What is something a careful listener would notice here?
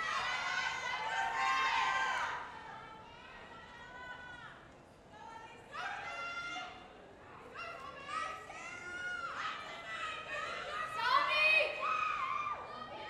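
A group of women sing together over loudspeakers outdoors.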